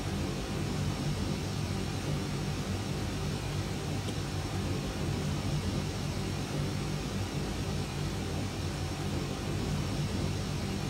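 Jet engines hum with a steady, low drone.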